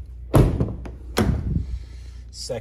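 A car door handle clicks and the door latch pops open.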